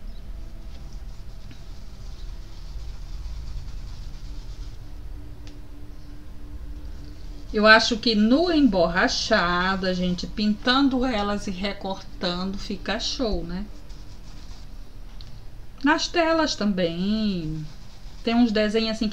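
A paintbrush scrapes softly across rough canvas.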